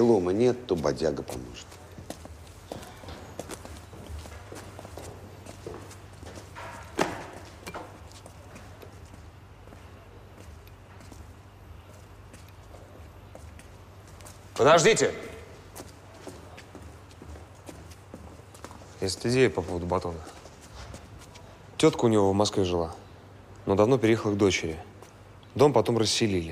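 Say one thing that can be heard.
Two men talk calmly nearby, in short exchanges with pauses.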